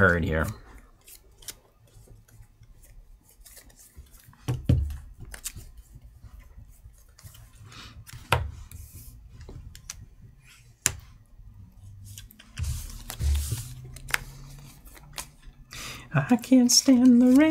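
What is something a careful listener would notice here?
Cards and game pieces click and tap on a table.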